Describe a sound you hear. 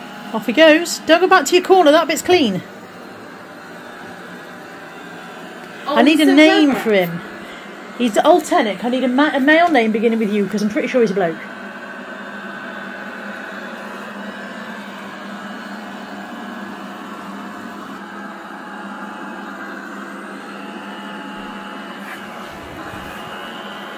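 A robot vacuum cleaner hums and whirs steadily as it moves across carpet.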